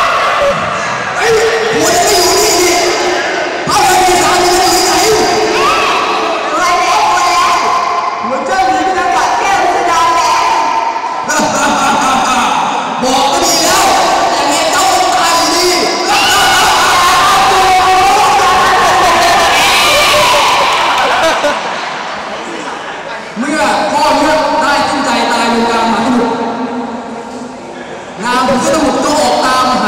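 Music plays loudly through loudspeakers in a large echoing hall.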